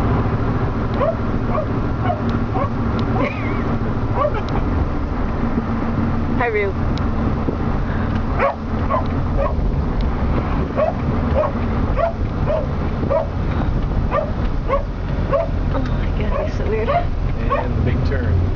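Dogs yelp and whine excitedly inside a car.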